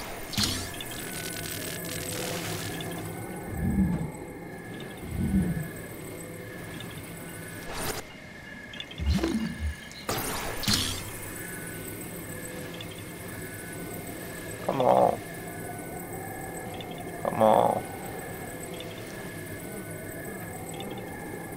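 Soft game music plays with a repeating melody.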